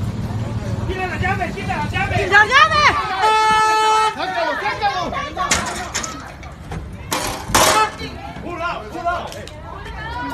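Men bang their hands on a truck door.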